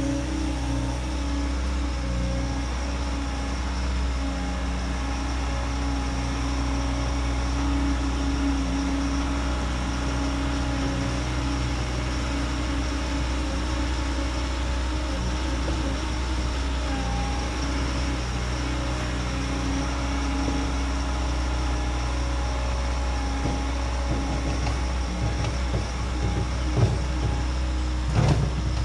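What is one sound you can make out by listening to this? A compact track loader's diesel engine rumbles steadily nearby.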